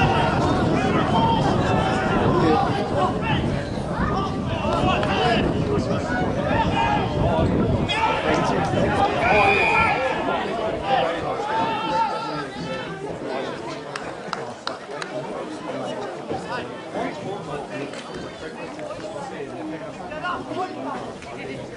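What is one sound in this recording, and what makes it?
Spectators on the sideline shout and cheer from a distance.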